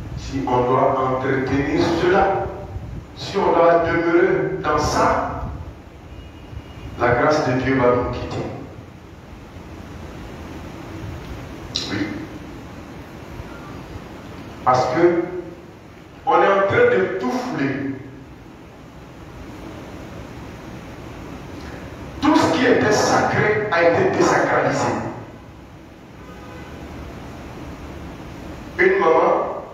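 A man preaches loudly and with passion in bursts, heard through a loudspeaker in an echoing hall.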